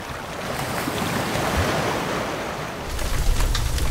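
Waves wash onto the shore.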